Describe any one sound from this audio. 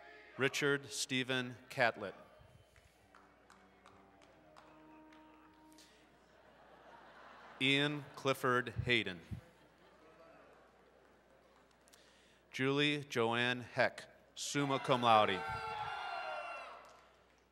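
A man reads out names through a loudspeaker in a large echoing hall.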